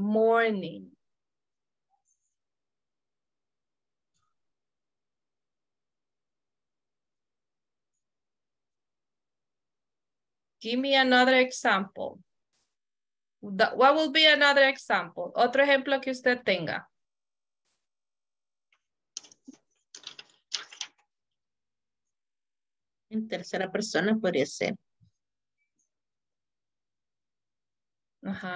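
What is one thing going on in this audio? A woman speaks calmly over an online call, in short bursts with pauses.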